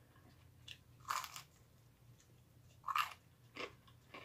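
Toasted bread crunches as a woman bites and chews.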